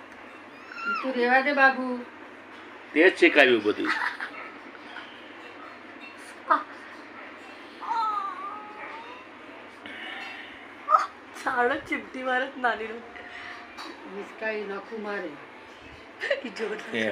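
A young woman talks playfully and laughs close by.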